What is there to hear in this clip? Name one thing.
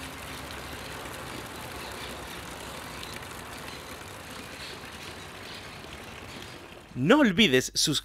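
Water trickles and splashes from a fountain into a basin.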